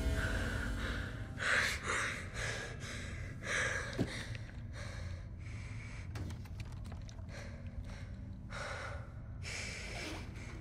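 A young girl breathes fast and shakily.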